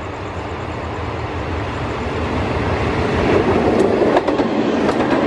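A diesel locomotive approaches and rumbles past.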